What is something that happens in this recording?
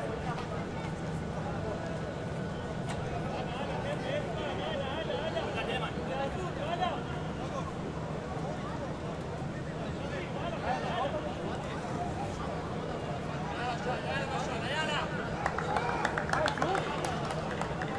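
A stadium crowd murmurs and calls out in the distance, outdoors.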